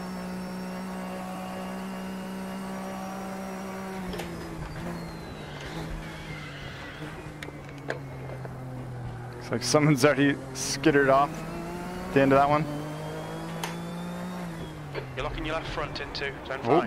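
A racing car engine hums steadily, then drops in pitch as it shifts down and revs again.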